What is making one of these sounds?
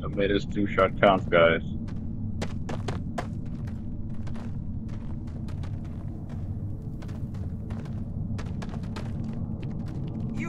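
Heavy boots thud on rocky ground with slow steps.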